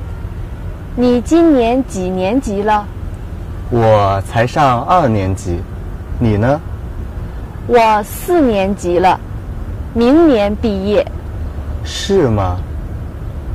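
Young women talk calmly nearby, outdoors.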